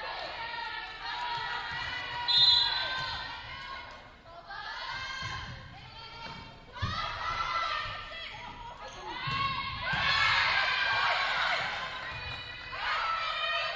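Spectators in a large echoing gym cheer and shout.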